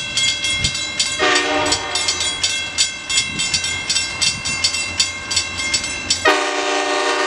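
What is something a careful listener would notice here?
A railroad crossing bell rings.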